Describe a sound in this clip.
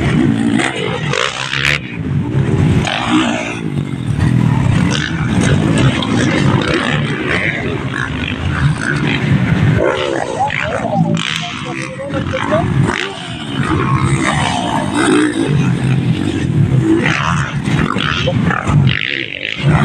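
Dirt bike engines roar and rev loudly nearby.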